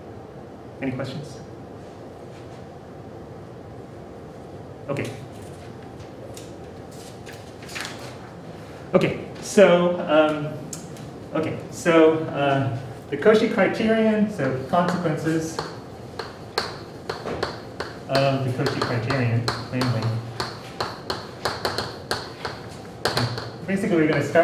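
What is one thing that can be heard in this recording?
A man speaks calmly, slightly muffled, in an echoing room.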